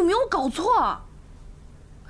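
A young woman exclaims in alarm, close by.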